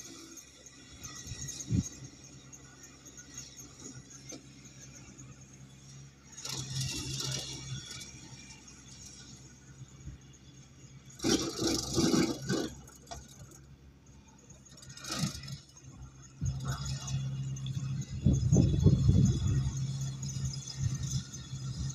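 A tractor engine hums steadily in the distance outdoors.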